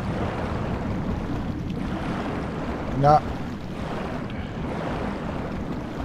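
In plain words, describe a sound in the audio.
Bubbles gurgle and fizz in water.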